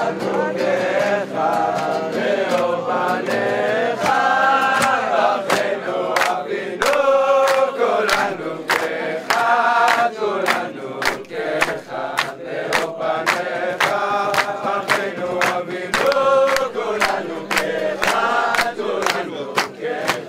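Hands clap in a steady rhythm.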